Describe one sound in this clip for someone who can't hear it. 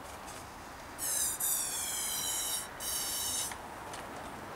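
A rubber grip squeaks as it is twisted onto a handlebar.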